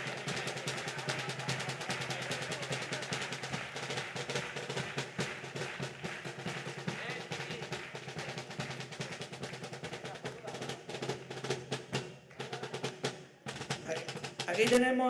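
A bass drum thumps in a steady beat.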